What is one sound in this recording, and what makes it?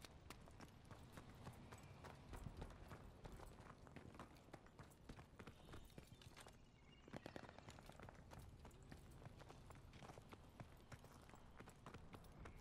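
Quick footsteps crunch on sand and gravel.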